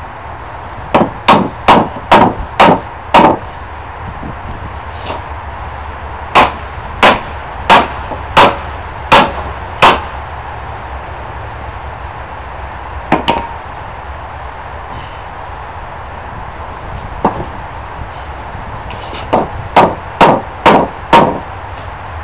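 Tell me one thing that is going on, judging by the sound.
A hammer strikes metal in sharp, ringing blows, in quick bursts.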